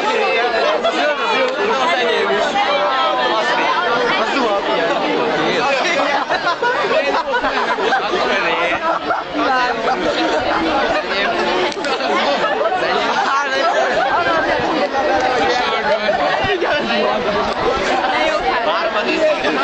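A large outdoor crowd chatters and cheers all around.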